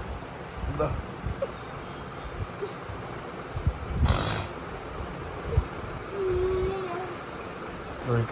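Bedding rustles as a toddler crawls across a bed.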